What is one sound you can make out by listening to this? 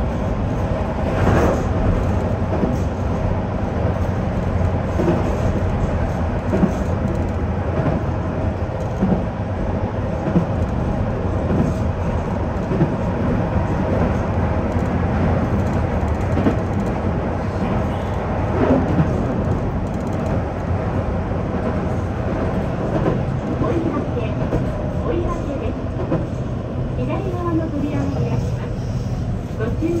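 Train wheels clatter and squeal over the track joints.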